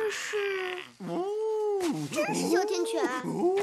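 A young boy speaks playfully, meowing like a cat.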